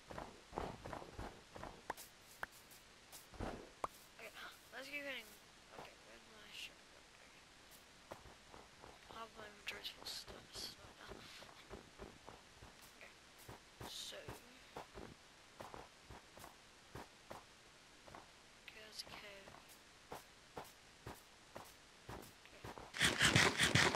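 Footsteps crunch on snow in a steady rhythm.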